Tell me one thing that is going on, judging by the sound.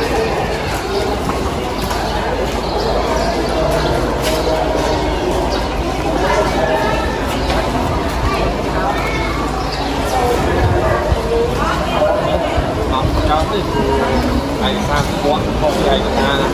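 Light wind blows outdoors.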